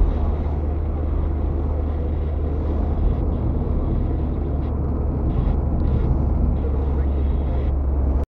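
Rain patters on the windshield.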